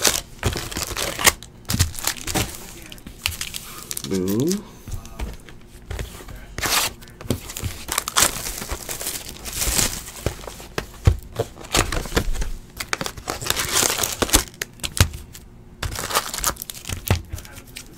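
Card packs tap and thump onto a table.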